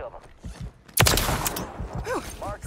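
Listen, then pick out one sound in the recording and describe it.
Gunshots fire in a short, rapid burst.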